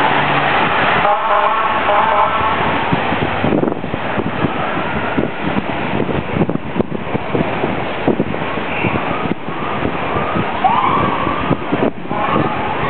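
Adults chatter nearby outdoors.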